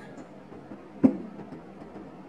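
A glass clinks against a glass carafe.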